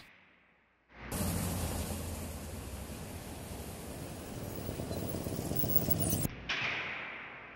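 A car engine hums as a car drives past.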